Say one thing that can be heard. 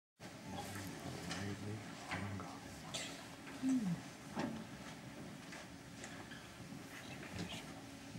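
An orchestra plays softly in a large hall.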